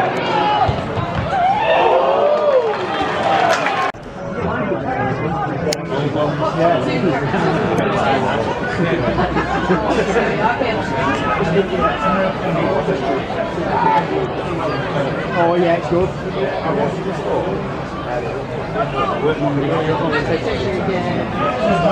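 A crowd of spectators chatters and calls out nearby outdoors.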